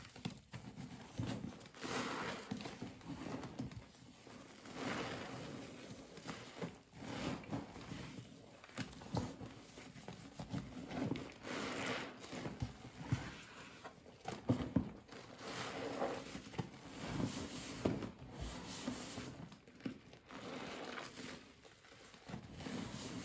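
Wet suds slap and splash in water.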